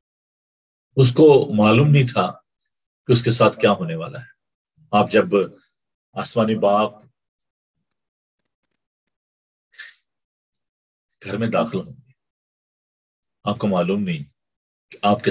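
A middle-aged man speaks calmly through a microphone on an online call, pausing between phrases.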